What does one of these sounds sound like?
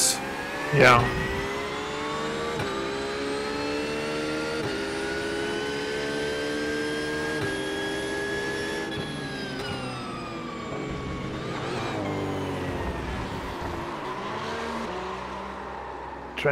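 A racing car engine roars and shifts through gears.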